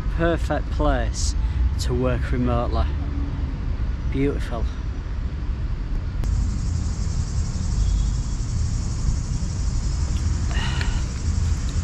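A middle-aged man speaks cheerfully, close to the microphone.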